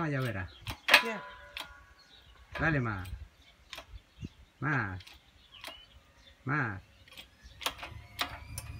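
Metal parts of a press click and knock.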